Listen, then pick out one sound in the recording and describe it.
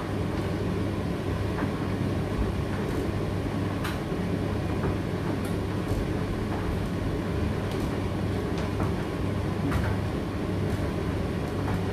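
A condenser tumble dryer runs with a steady hum as its drum turns.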